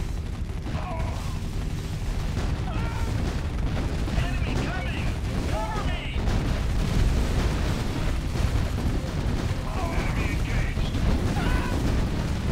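Rapid gunfire rattles in a battle.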